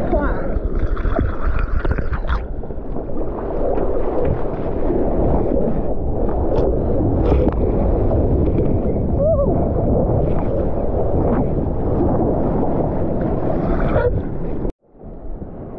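Water sloshes and churns close to the surface.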